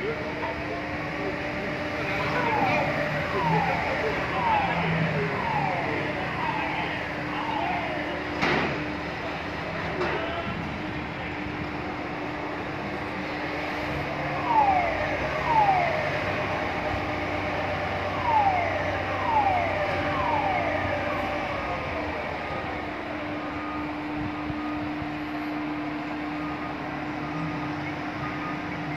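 A crane's motor hums steadily.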